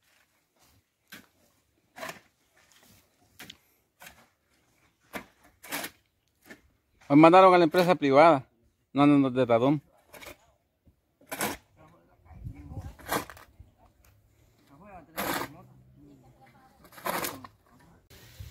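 Shovels scrape and thud into dirt.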